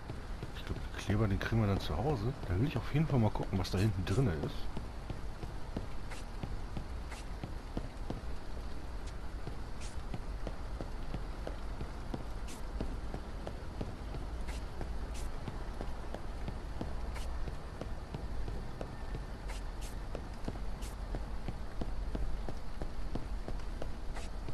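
Footsteps tap on pavement at a walking pace.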